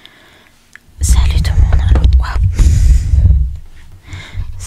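Breath blows loudly into a microphone.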